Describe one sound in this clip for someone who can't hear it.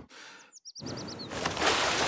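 A young woman blows out candles with a puff of breath.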